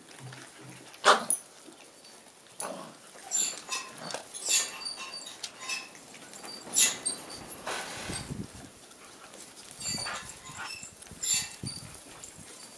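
Puppies squeal and whimper close by.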